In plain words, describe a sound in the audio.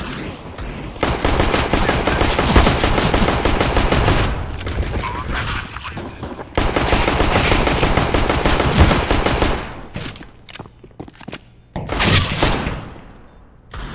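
Pistol shots fire in quick bursts.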